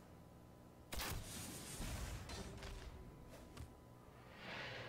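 A game card lands on the board with a thud.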